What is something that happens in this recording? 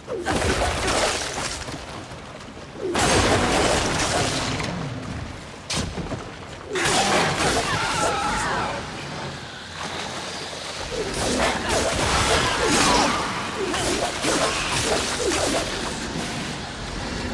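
Blades slash and strike with heavy impacts.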